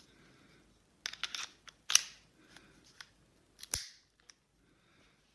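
Metal parts of a pistol click and clack as they are handled.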